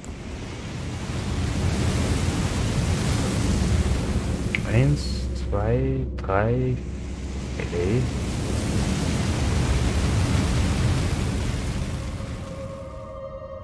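Flames roar in loud bursts.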